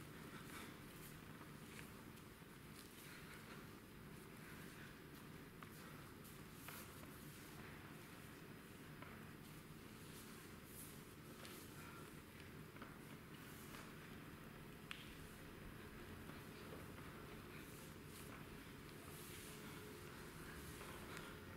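Bare feet patter and shuffle on a wooden stage floor.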